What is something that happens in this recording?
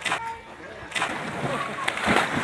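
A body plunges into water with a splash.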